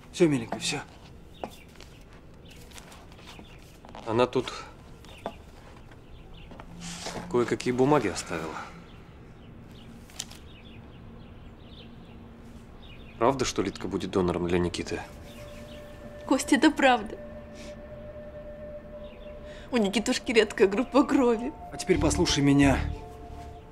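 A man speaks quietly and gently.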